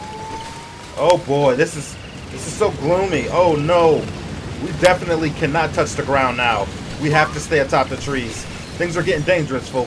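Birds squawk and call loudly.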